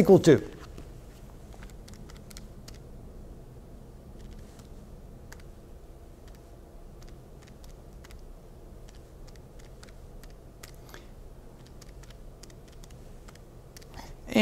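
Calculator buttons click softly.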